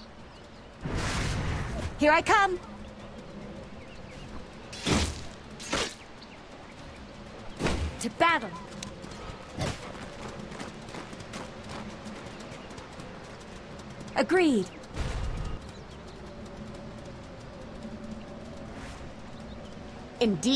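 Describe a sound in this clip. Magic blasts burst in short, sharp whooshes.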